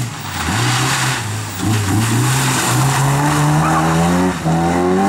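Tyres screech on wet tarmac as the car corners.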